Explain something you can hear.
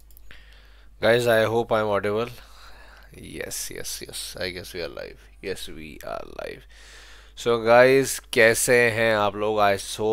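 A young man speaks with animation close to a headset microphone.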